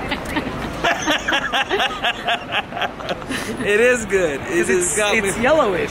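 A young man laughs close by.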